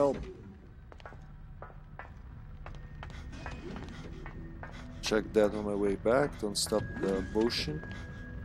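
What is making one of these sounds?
Footsteps echo on a metal floor.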